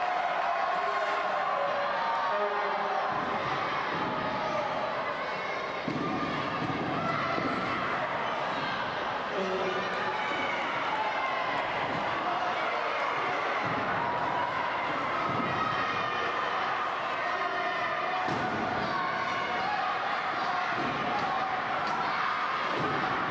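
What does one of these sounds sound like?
A crowd of men shouts and cheers in a large echoing hall.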